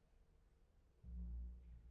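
Cellos and basses play a deep, swelling passage.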